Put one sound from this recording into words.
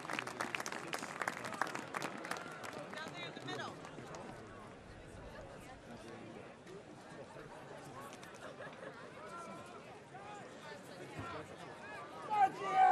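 Men on the sideline talk and shout nearby.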